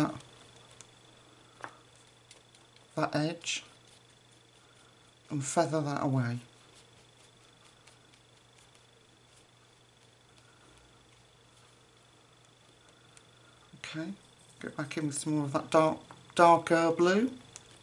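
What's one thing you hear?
A paintbrush strokes softly across paper.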